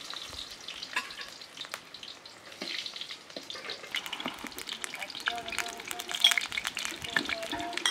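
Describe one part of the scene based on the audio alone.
Eggplants sizzle and crackle in hot oil in a pan.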